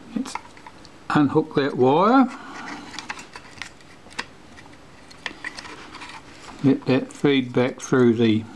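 Small metal parts click and tap as they are handled.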